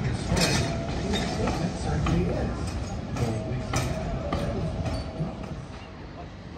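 Train carriages rumble and clatter along a track.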